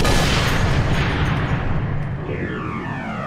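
A bullet whooshes through the air in slow motion.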